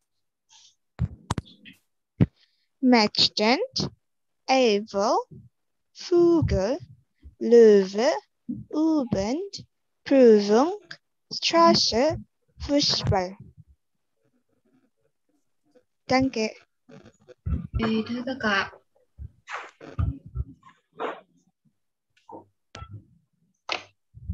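A young woman speaks clearly over an online call, pausing between phrases.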